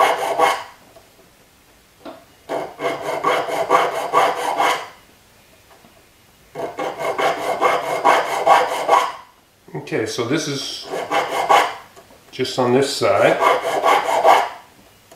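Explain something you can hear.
A blade scrapes wood in quick rasping bursts.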